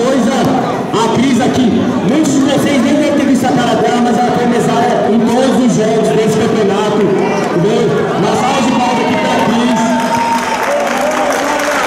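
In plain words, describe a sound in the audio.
A young man speaks loudly and with animation through a microphone and loudspeakers in a large echoing hall.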